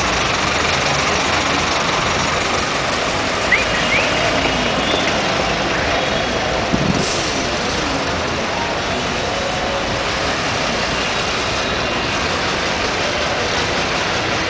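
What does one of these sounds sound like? Bus engines idle and rumble steadily close by, outdoors in a busy street.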